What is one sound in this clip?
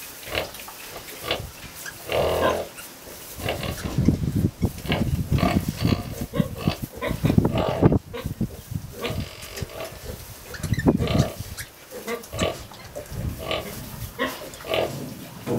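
Piglets squeal and squeak close by.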